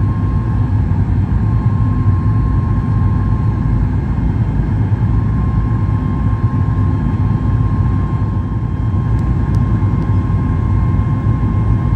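A jet engine roars steadily with a low rumble and a high whine.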